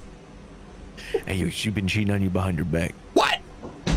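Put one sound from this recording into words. A young man exclaims with animation into a microphone.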